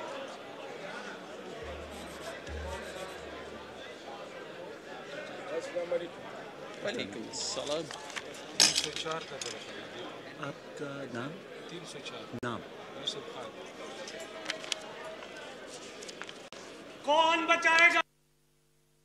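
A crowd of men murmurs and chatters in a large echoing hall.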